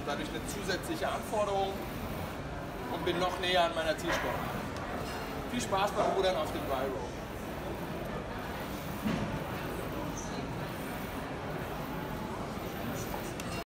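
A rowing machine's seat slides back and forth.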